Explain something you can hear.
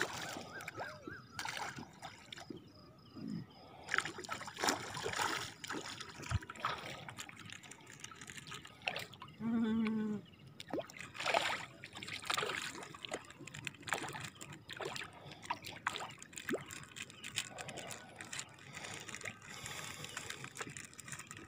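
Small bits splash and plop into calm water again and again.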